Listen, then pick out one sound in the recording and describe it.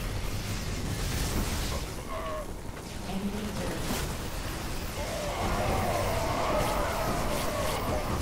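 Small explosions burst during a game battle.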